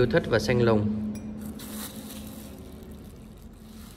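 Plastic bubble wrap crinkles softly as a cup is set down on it.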